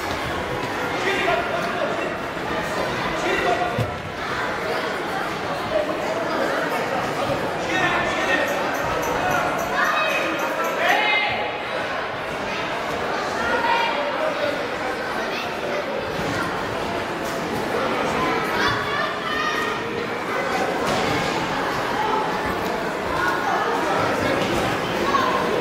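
Sneakers squeak on a hall floor.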